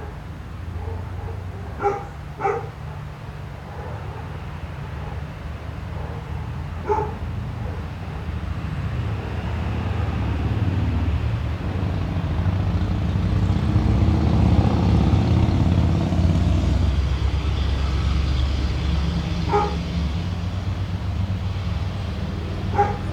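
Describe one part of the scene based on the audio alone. Wind blows steadily outdoors, rustling leaves.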